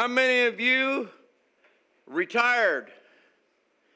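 An elderly man speaks emphatically into a microphone.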